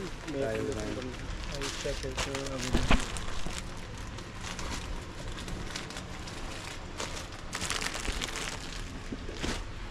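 Cardboard boxes rustle and knock on shelves.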